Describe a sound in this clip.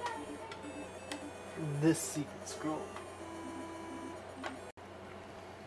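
Short electronic beeps tick in a quick, even rhythm.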